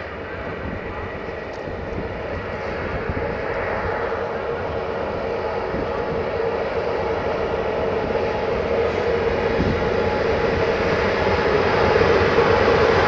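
An electric locomotive hums as it approaches with a freight train.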